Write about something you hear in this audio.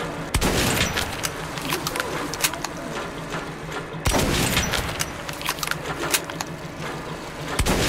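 A gun fires sharp, loud shots that echo.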